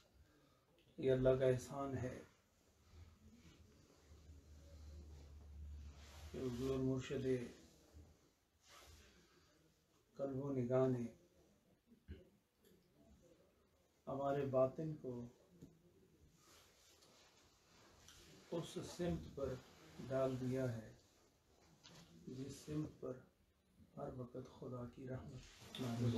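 A middle-aged man speaks calmly and slowly in short phrases, close by, with pauses between them.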